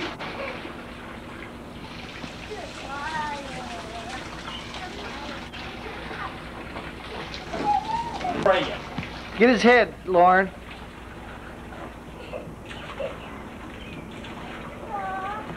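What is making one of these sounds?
Water from a garden hose splashes into a paddling pool.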